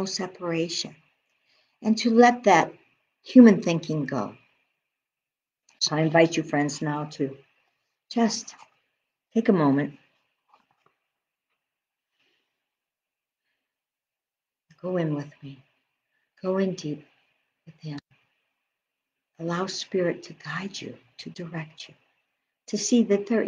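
A middle-aged woman speaks calmly and close to a microphone, with pauses.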